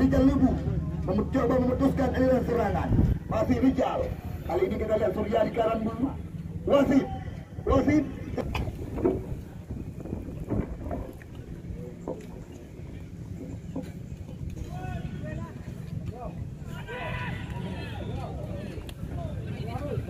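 Spectators shout and call out from the sidelines of an outdoor match.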